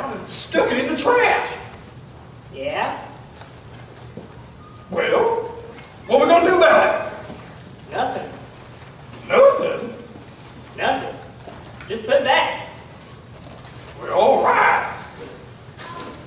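A second young man answers, speaking in a slightly echoing room.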